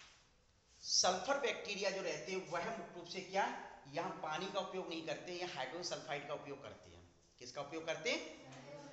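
A man speaks clearly and with animation, close by.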